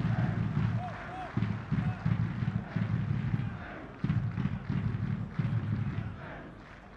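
A large stadium crowd chants and cheers steadily.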